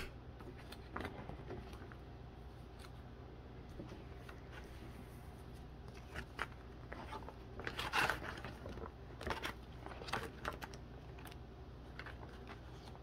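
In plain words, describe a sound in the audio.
Trading cards flick and tap against each other.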